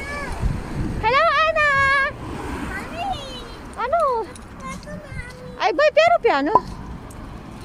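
A young girl speaks in a high, lively voice close by.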